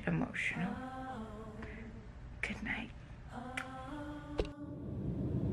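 A young woman talks close by, in a cheerful voice.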